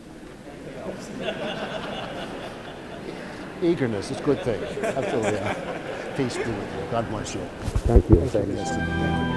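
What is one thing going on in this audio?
Many voices sing together in a large echoing hall.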